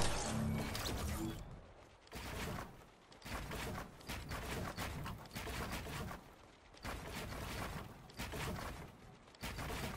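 Wooden walls and stairs are built with rapid clacks.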